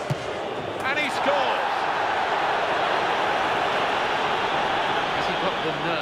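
A stadium crowd cheers loudly after a goal.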